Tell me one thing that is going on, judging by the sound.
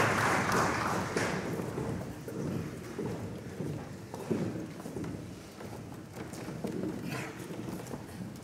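Footsteps shuffle across a wooden stage.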